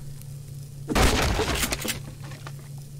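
A shotgun is drawn with a short metallic clatter.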